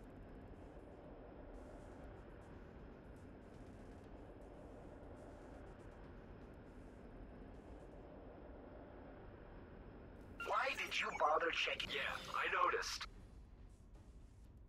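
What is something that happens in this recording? A spacecraft engine hums low and steady.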